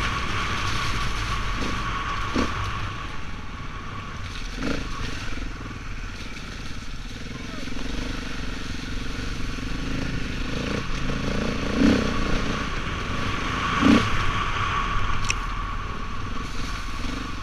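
Wind rushes loudly past.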